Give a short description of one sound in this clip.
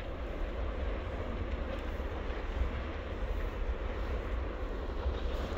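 Wind blows steadily outdoors, buffeting the microphone with a low rumble.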